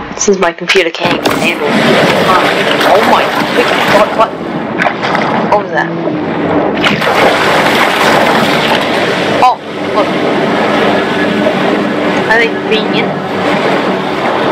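Water splashes and churns as a shark swims through it.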